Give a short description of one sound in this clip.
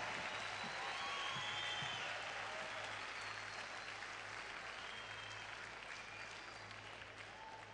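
A band plays live music in a large echoing hall.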